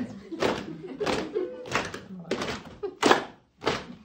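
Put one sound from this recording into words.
A group of women chant together.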